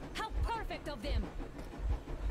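A young woman speaks calmly, muffled through a gas mask.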